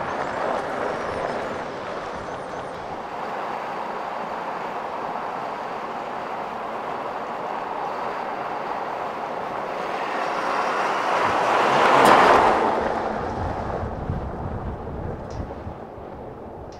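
A pickup truck engine hums as it drives past.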